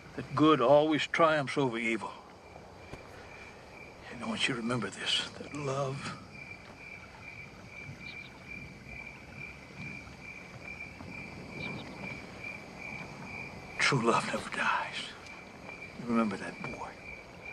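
An elderly man speaks slowly and earnestly, close by, with pauses between his words.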